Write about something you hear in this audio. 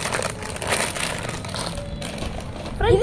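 A plastic packet crinkles.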